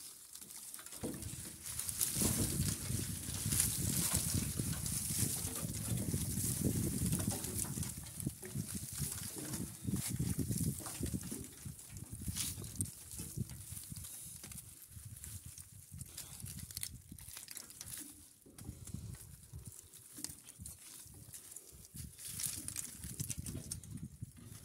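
Dry husks crackle and clatter through a machine.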